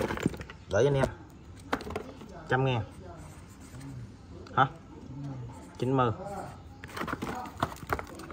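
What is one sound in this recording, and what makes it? Small metal parts clatter as they are tipped out of a cardboard box.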